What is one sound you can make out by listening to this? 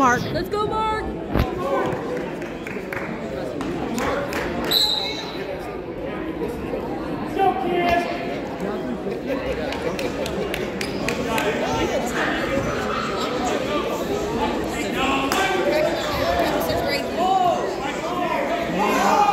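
A crowd of spectators chatters and cheers loudly in an echoing gym.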